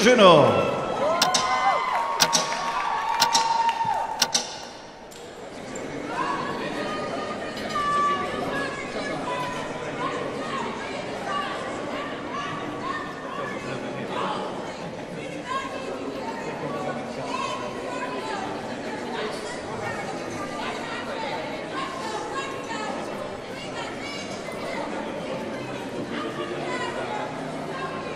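Music plays over loudspeakers in a large echoing hall.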